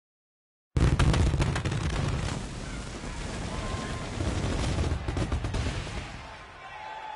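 A crowd cheers and roars loudly.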